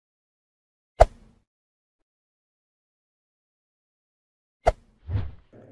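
A finger taps a button with a sharp click.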